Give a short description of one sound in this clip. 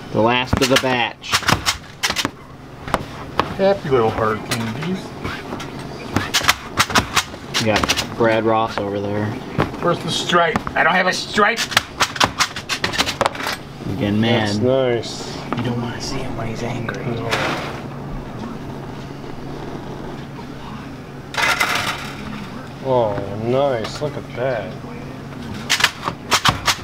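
A tool knocks and scrapes sharply against a hard surface.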